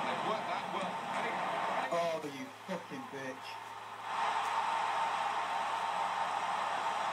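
A stadium crowd roars through a television speaker, swelling louder after a goal.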